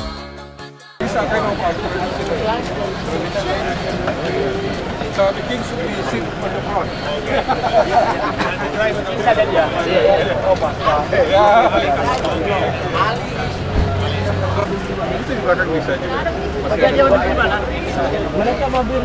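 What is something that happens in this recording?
A crowd of men chat and talk over each other nearby outdoors.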